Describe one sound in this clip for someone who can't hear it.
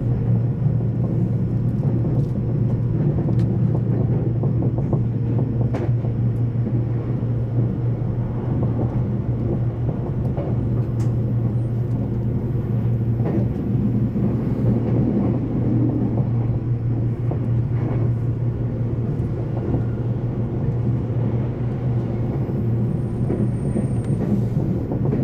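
Train wheels click over rail joints now and then.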